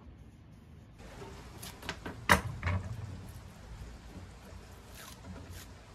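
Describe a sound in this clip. Hands tap and click against a thin wooden shaft.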